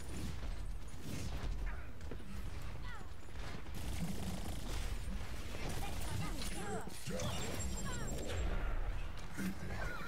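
Heavy gunfire blasts in short, rapid bursts.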